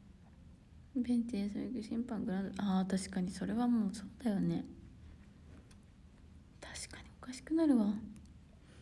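A young woman speaks close to a microphone, calmly and softly.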